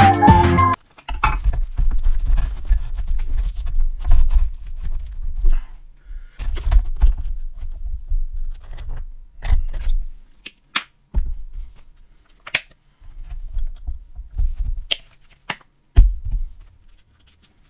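A crusty bread roll thumps softly on a wooden board.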